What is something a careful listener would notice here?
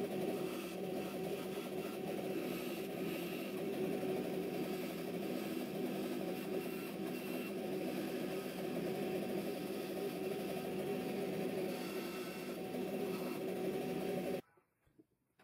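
A band saw whines steadily as it cuts through metal.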